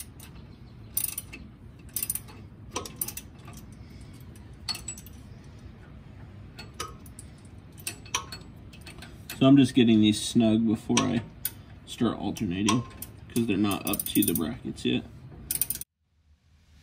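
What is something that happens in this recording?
Metal parts click and clink.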